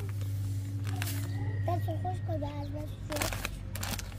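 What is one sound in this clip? A plastic packet crinkles.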